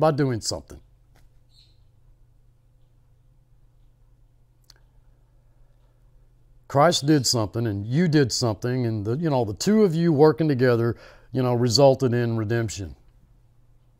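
A middle-aged man speaks calmly and close into a microphone, with pauses.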